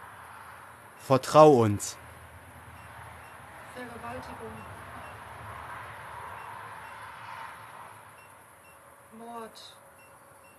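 A man calls out loudly, in short bursts, close by.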